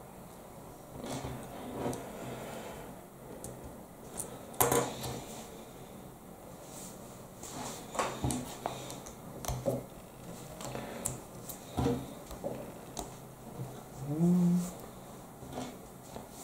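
Small plastic pieces click and snap together.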